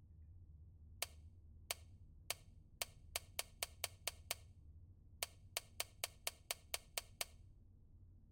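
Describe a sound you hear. A safe's combination dial clicks rapidly as it turns.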